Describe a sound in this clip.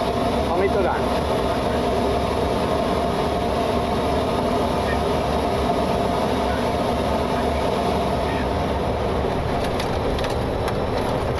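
Jet engines roar steadily inside a cockpit.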